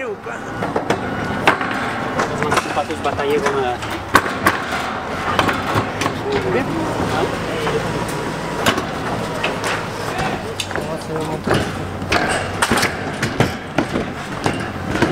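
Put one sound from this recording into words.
Footsteps thud and clang on a metal grandstand.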